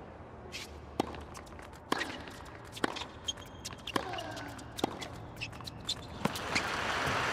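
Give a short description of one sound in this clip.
Tennis balls are struck back and forth with sharp pops.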